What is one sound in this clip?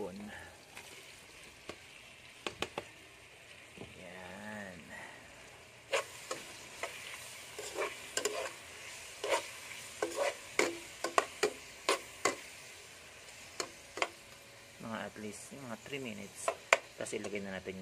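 A metal spoon scrapes and clinks against a frying pan.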